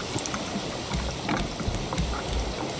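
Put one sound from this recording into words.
Water splashes as it is poured from a cup.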